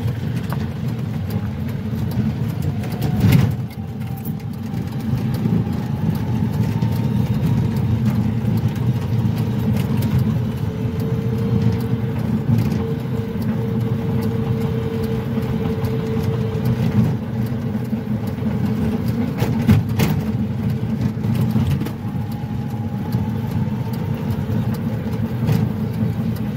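Tyres crunch and rumble over a rough dirt road.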